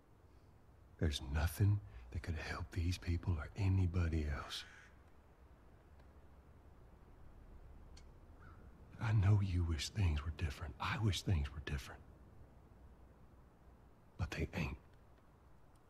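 A man speaks quietly and earnestly, close by.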